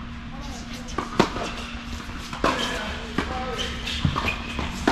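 Tennis rackets strike a ball back and forth, echoing in a large indoor hall.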